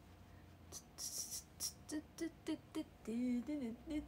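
A makeup sponge pats lightly against skin.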